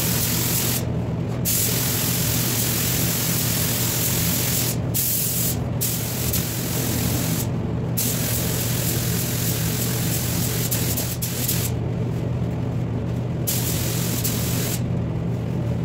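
A spray gun hisses loudly in bursts.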